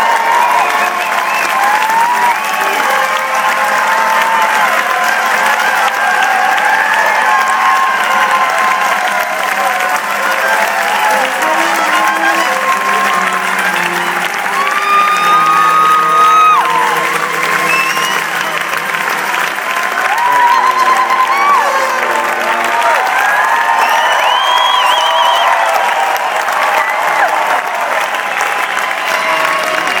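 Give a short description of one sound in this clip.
A band plays acoustic guitars in a large hall.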